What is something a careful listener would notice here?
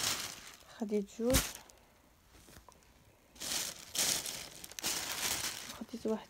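Soft fabric rustles and swishes as it is handled up close.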